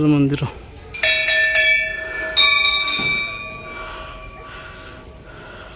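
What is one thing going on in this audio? A bell rings out with a long, shimmering ring.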